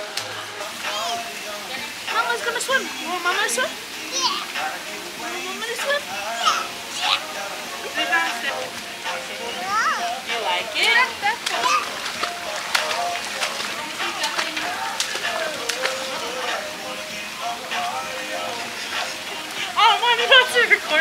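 Water bubbles and churns steadily from jets.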